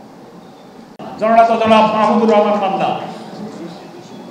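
A second elderly man speaks loudly through a microphone.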